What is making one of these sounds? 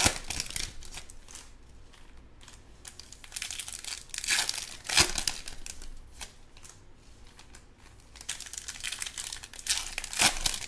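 Foil card packs crinkle and tear open close by.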